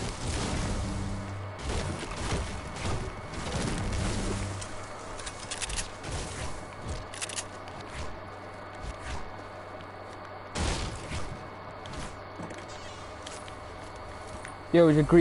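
Quick footsteps patter on the ground in a video game.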